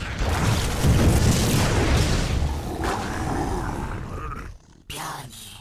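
Video game battle effects crackle and rumble with gunfire and blasts.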